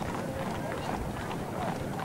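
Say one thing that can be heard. Horse hooves clop on the road.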